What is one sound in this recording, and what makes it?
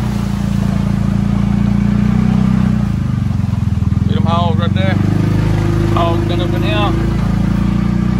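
A vehicle engine rumbles steadily while driving through mud.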